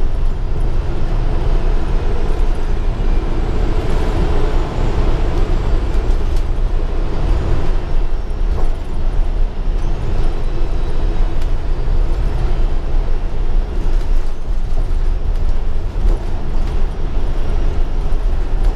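The bus body rattles and creaks over the road.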